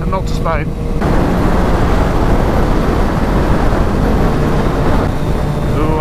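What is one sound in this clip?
Wind rushes loudly past at speed.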